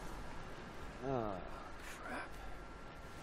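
A young man mutters in surprise close by.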